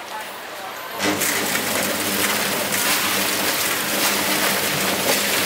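Water pours and splashes loudly into a metal pot.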